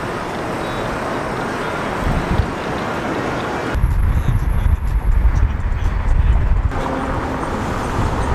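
Traffic passes by outdoors.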